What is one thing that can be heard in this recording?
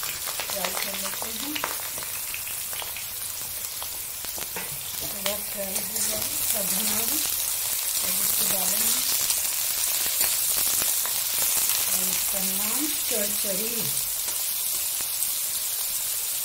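Vegetable pieces sizzle in hot oil in a pan.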